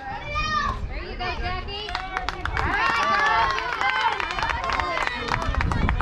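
Young players shout and cheer across an open field.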